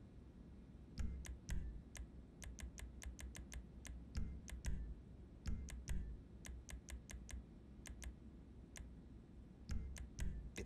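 Short, sharp menu clicks tick quickly again and again.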